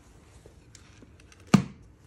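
A wooden box lid knocks shut.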